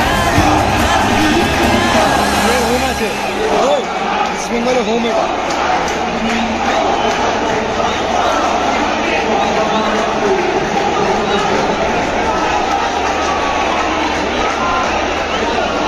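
Many people in a crowd whistle shrilly.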